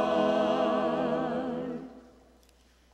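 A group of men and women sing together through microphones in a large echoing hall.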